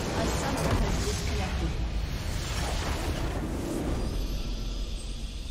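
Magical blasts and explosions crash loudly.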